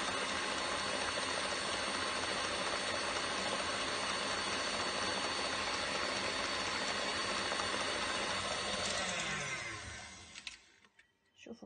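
An electric stand mixer whirs loudly and steadily, then winds down and stops.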